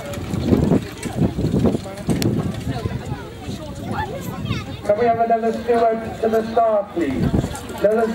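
Sulky wheels rattle over the grass.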